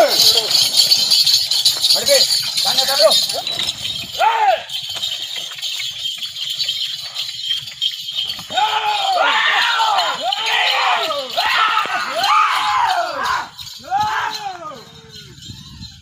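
Several men shout loudly outdoors, urging on bulls.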